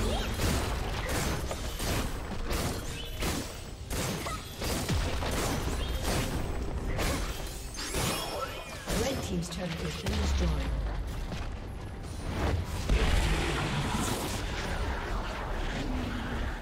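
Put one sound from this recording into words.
Video game spell effects crackle and clash in a fight.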